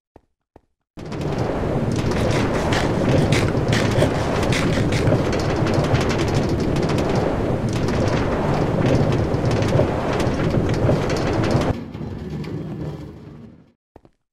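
A minecart rumbles along rails.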